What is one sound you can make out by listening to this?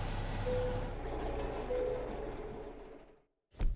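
A truck's engine shuts off and the rumble dies away.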